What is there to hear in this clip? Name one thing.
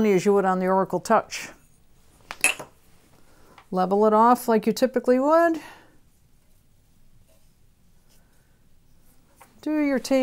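An elderly woman speaks calmly and clearly.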